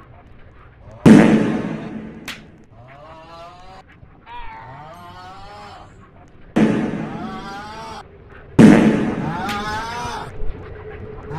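A loud magical blast bursts with a whooshing roar, several times.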